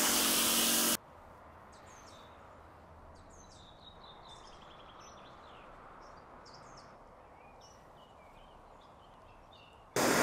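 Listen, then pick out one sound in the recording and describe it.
Thick foam fizzes and crackles softly as it drips.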